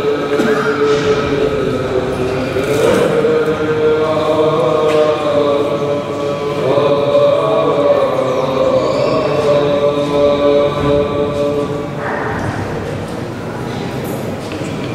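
A choir of men chants slowly in a large echoing hall.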